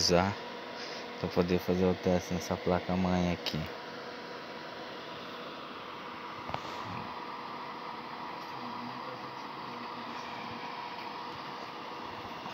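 A computer fan whirs steadily up close.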